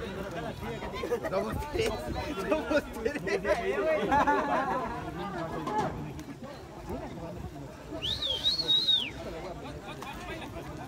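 A crowd of spectators talks and calls out at a distance outdoors.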